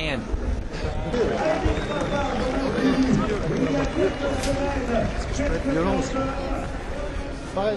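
Men talk and shout close by.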